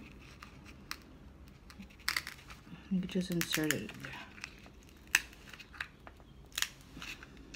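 Stiff paper rustles and crinkles as it is handled.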